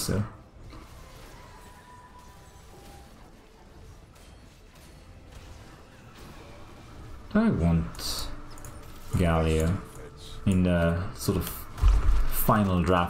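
Game battle sound effects of spells and blows clash quietly.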